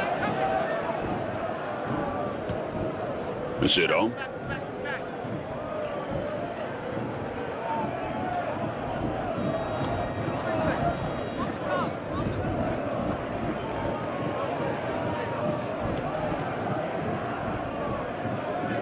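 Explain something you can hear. A large crowd roars and chants steadily in a stadium.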